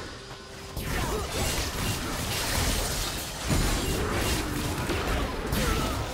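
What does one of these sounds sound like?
Spell effects whoosh and burst in a game fight.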